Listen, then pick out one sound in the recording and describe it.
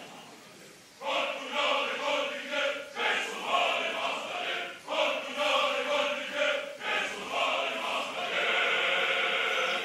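A chorus of men sings together.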